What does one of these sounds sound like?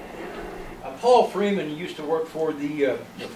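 A middle-aged man speaks calmly to a room.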